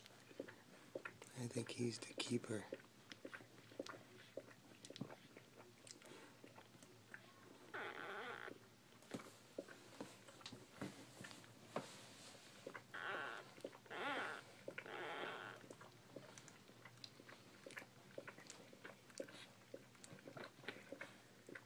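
A newborn puppy squeaks and whines now and then.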